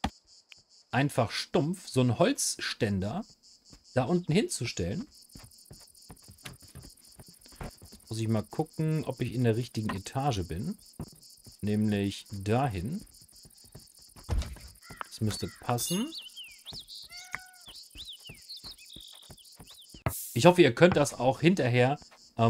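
A young man talks calmly and casually, close to a microphone.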